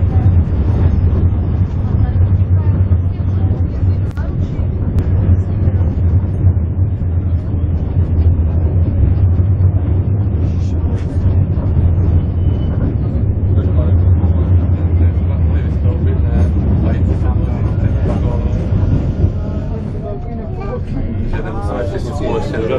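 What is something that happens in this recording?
A train rumbles steadily along the track, heard from inside a carriage.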